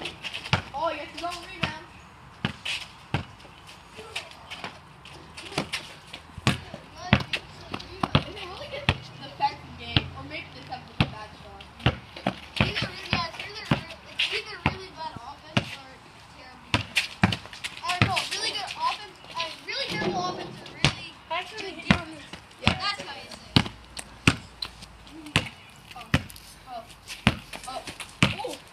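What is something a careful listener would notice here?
A basketball bounces repeatedly on concrete.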